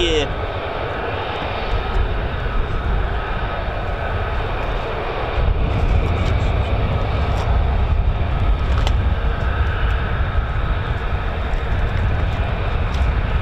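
A jet engine roars steadily nearby, with a loud rumbling hum.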